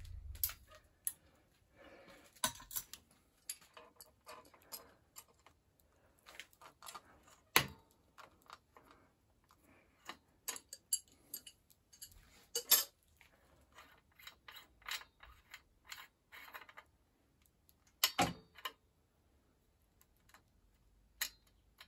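Metal parts click and clink as a bicycle headset is handled.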